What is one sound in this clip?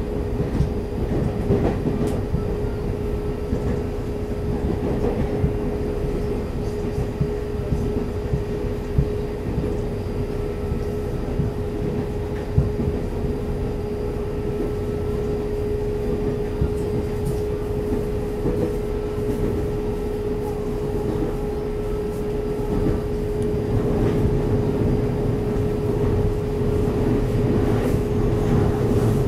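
An electric train's traction motors whine with a steady hum.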